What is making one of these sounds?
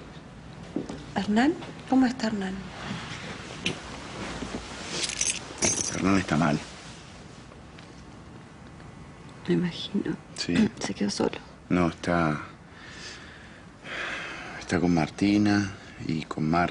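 A man speaks softly and calmly nearby.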